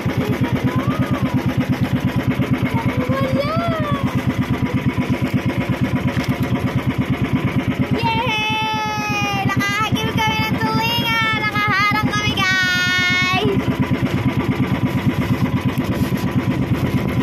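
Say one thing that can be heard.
A boat engine chugs steadily and fast.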